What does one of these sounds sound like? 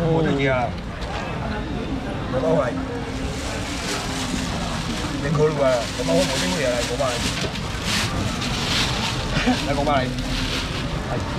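Women call out and talk with animation close by.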